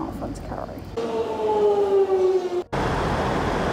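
A train rushes past with a falling whine.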